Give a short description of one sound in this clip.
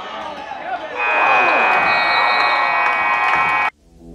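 A loud game buzzer sounds.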